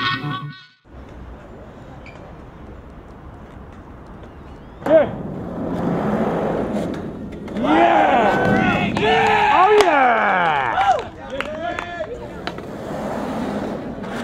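Skateboard wheels roll and grind over a metal ramp.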